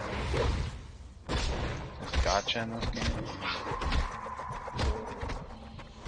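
Blows thud against a growling beast.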